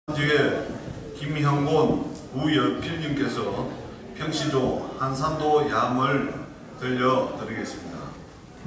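A man sings a slow, drawn-out chant through a microphone.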